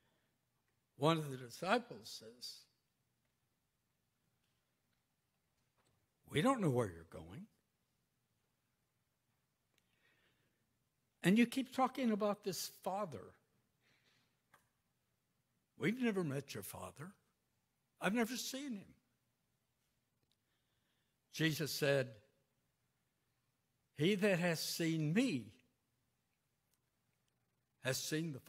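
An elderly man speaks calmly into a microphone in short phrases with pauses, in an echoing hall.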